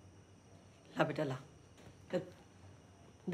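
A middle-aged woman speaks calmly.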